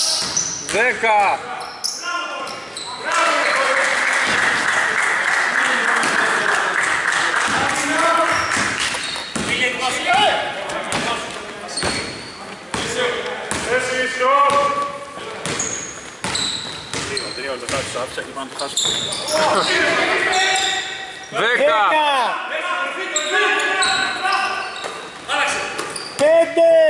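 A basketball bounces on a wooden floor.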